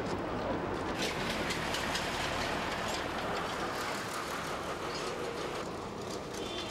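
Cart wheels roll over a paved road.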